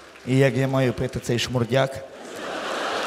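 A woman sings loudly through a microphone.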